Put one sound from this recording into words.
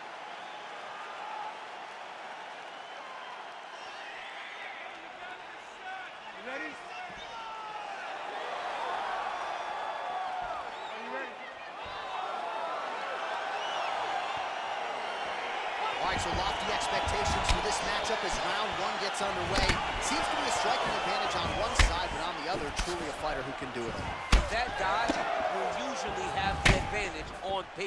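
A large crowd cheers and whistles in an echoing arena.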